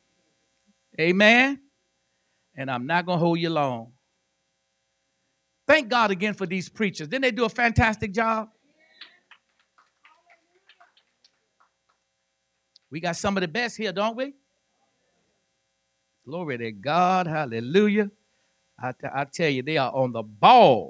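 An elderly man preaches with animation into a microphone, in bursts with pauses.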